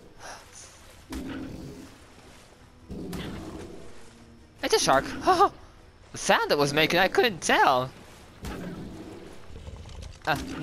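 Water splashes as an animal wades through it.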